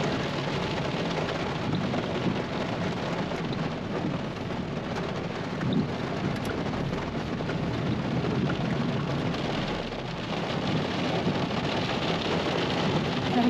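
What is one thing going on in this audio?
A car's tyres hiss over a wet road.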